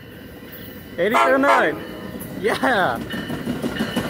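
A train horn blares twice, close by.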